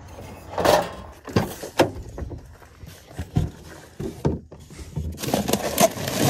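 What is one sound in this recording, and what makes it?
A cooler lid thumps open.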